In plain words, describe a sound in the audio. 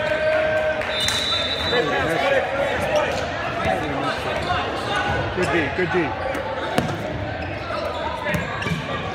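A basketball bounces on the floor in a large echoing hall.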